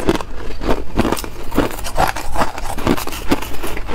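A metal spoon scrapes and clinks against ice in a glass bowl.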